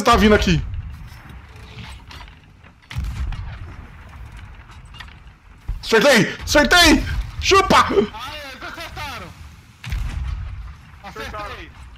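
A cannon fires with deep booms, one after another.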